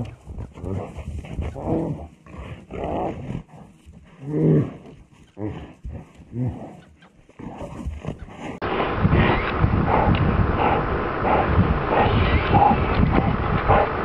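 Bears growl and roar as they fight.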